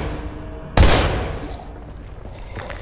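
A gunshot bangs loudly and rings out down an echoing corridor.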